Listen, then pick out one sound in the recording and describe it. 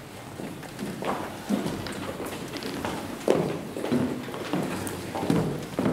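A choir sings in a large echoing hall.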